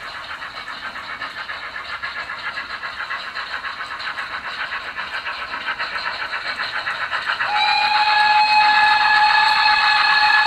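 A model steam locomotive chuffs in a quick, steady rhythm, growing louder as it approaches.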